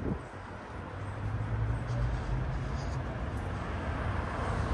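A car drives by slowly on a street.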